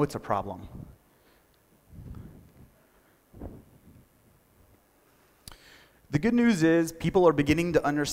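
A man speaks through a loudspeaker in a large echoing hall.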